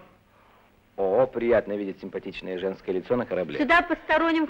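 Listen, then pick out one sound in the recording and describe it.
A woman speaks.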